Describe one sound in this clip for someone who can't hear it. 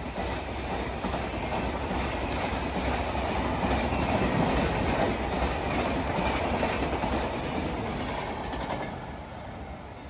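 A passenger train rushes past close by, its wheels rumbling and clattering on the rails.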